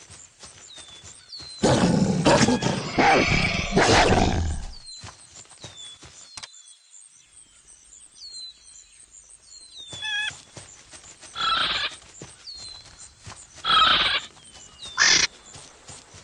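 Paws patter quickly over the ground as an animal runs.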